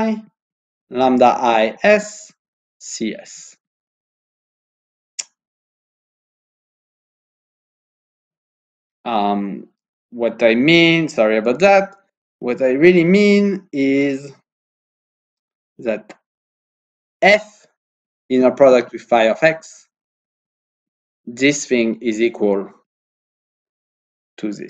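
A man speaks calmly into a close microphone, in bursts with pauses.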